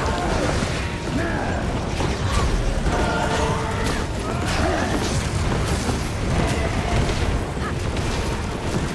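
Fiery spell effects whoosh and roar steadily.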